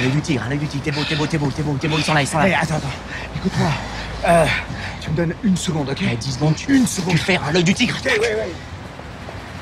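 A man speaks with agitation, close by.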